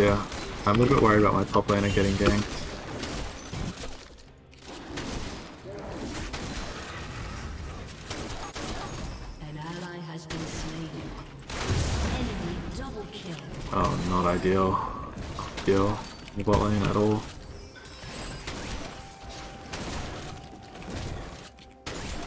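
Fantasy game spell effects whoosh and clash during a fight.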